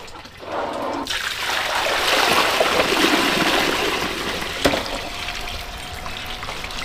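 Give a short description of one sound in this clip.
Water pours from a tap and splashes into a basin.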